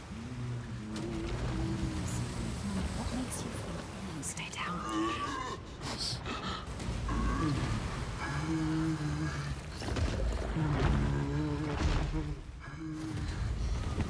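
A young woman whispers tensely close by.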